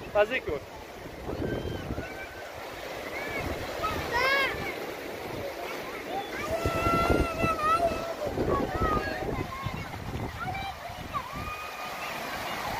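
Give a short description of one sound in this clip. Waves wash and break gently on the shore.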